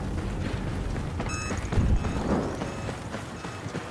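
Starfighters roar overhead.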